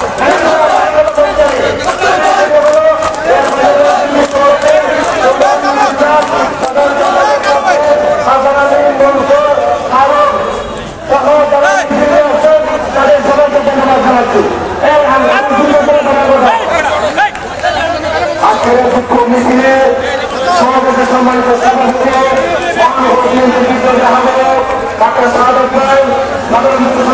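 A crowd of men chants back in unison.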